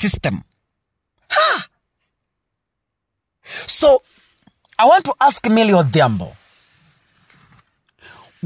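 A woman speaks with animation into a microphone, in short bursts.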